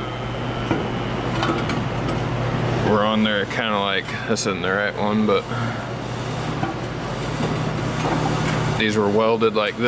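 A metal plate scrapes and knocks against a steel beam.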